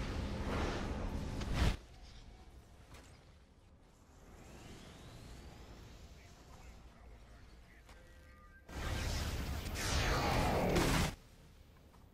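Energy blasts crackle and boom in loud bursts.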